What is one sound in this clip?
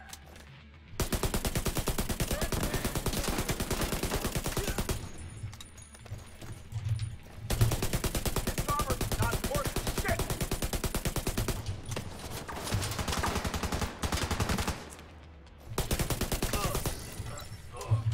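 A machine gun fires in long, rapid bursts.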